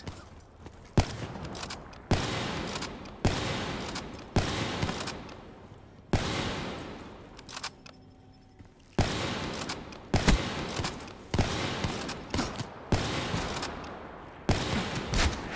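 Loud sniper rifle shots crack one at a time, each followed by a booming echo.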